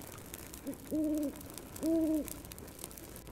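An owl hoots twice.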